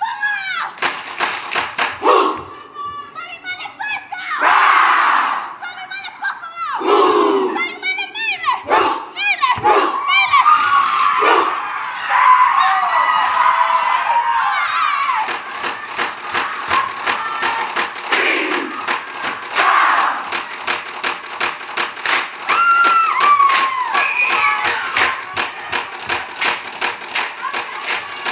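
A group of young men and women chant and shout loudly together.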